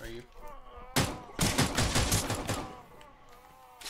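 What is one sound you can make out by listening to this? A pistol fires a rapid burst of shots.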